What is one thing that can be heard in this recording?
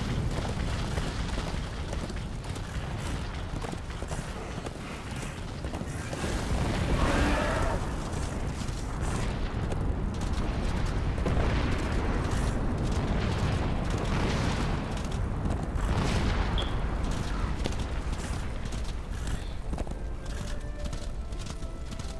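Hooves gallop steadily over hard ground.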